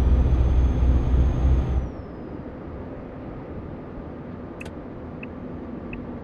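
A truck engine rumbles loudly, then drops to a quieter steady hum.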